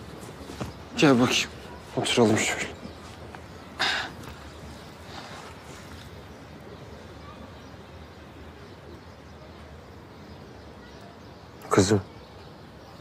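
A man speaks quietly and calmly close by.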